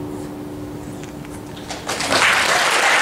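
Acoustic guitars play together.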